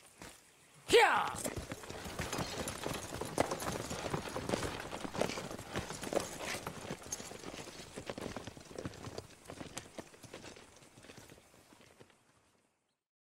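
A wagon rolls away, its wooden wheels creaking and rattling as it fades into the distance.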